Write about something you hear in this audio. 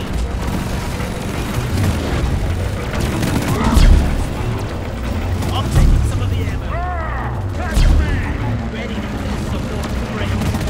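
A heavy gun fires in rapid, continuous bursts.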